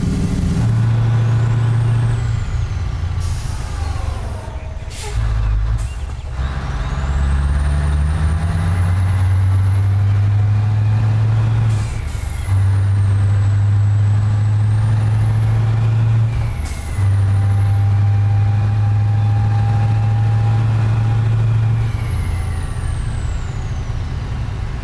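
A truck engine drones and revs up and down through the gears.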